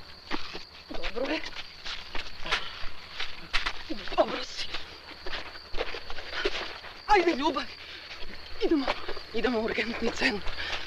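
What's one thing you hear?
A young woman cries out in distress nearby.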